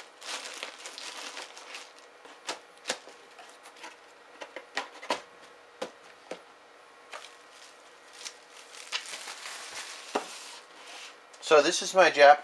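Cardboard flaps rustle and scrape as a box is handled.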